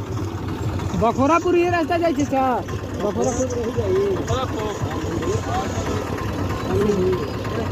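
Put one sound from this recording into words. A young man speaks loudly nearby over the engine noise.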